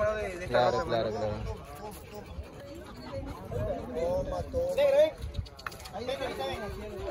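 Several men and women talk and call out nearby.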